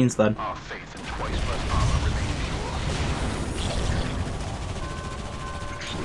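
A magical blast roars and rumbles.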